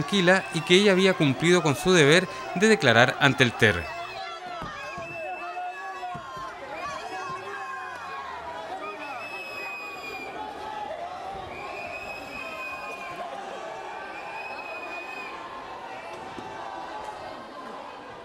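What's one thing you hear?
A crowd of men and women shout loudly and nearby.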